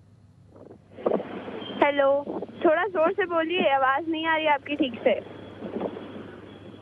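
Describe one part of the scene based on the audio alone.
A man talks calmly over a remote line.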